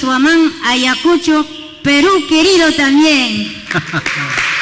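A woman sings into a microphone in a large echoing hall.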